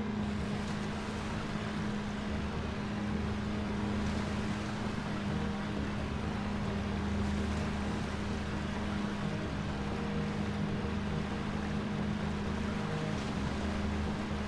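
Water churns and splashes behind a moving vessel.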